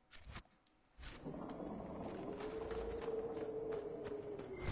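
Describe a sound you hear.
Footsteps crunch on sand outdoors.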